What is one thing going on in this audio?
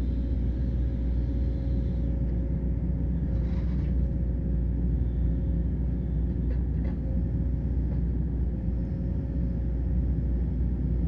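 An excavator engine rumbles steadily nearby.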